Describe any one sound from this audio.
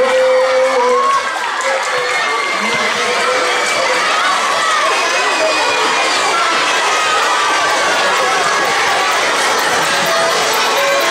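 A crowd of children chatters loudly in a large echoing hall.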